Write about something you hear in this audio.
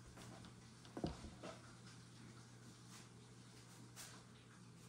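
A plastic tank scrapes and knocks against a wooden table as it is lifted.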